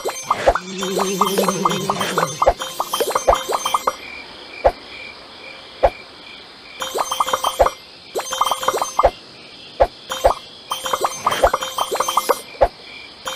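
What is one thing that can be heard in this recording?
Quick bright chimes ring out in rapid runs as a game character collects items.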